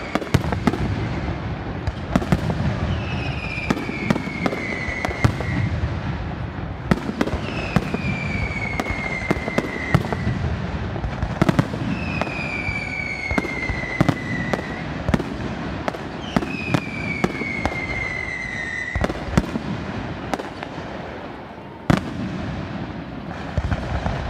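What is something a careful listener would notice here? Bursting fireworks give a low, continuous rumble.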